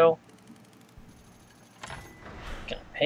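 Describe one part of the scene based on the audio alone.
Coins clink rapidly in a quick run of small chimes.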